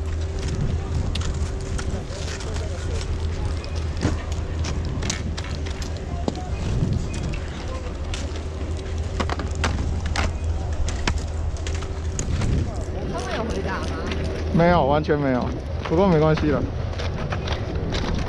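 Skis scrape and knock lightly on packed snow.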